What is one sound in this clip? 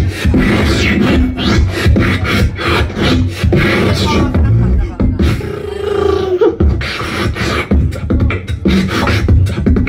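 A young man beatboxes loudly into a microphone, heard through a loudspeaker.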